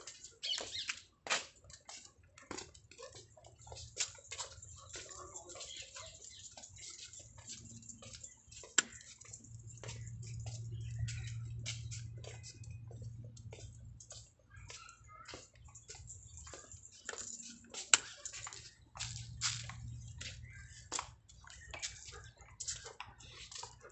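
A dog's leash jingles and rattles.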